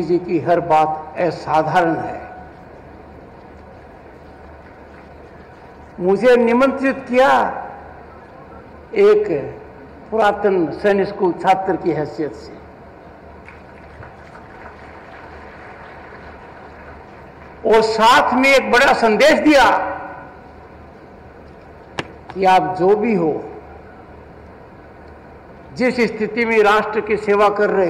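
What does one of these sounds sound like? An elderly man speaks with emphasis through a loudspeaker system, in phrases broken by pauses.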